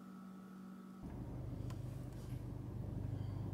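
A car engine rumbles low from inside the car.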